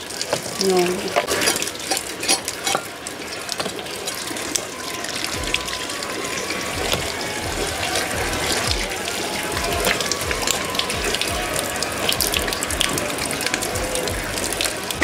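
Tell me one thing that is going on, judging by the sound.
Water bubbles and simmers in a metal pot.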